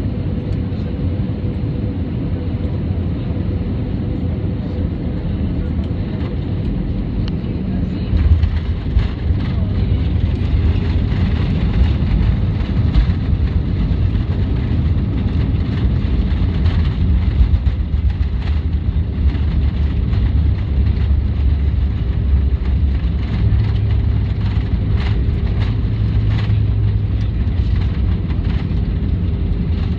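Wheels rumble and thump along a runway.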